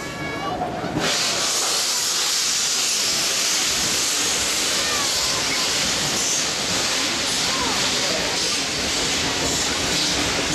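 Steam hisses loudly from a locomotive.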